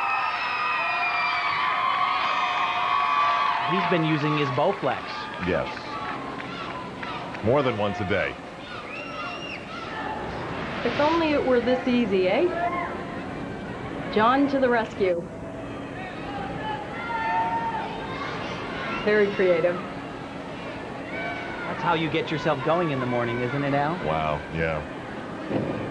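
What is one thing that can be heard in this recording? A large crowd cheers and applauds in a big echoing arena.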